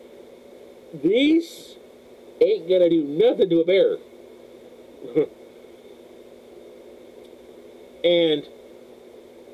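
A man speaks with animation close to the microphone, in short bursts.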